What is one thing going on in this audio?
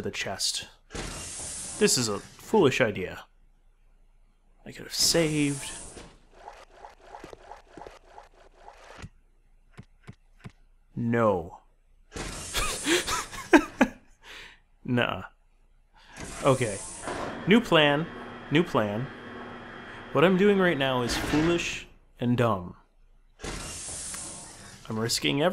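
Elevator doors slide open with a smooth rumble.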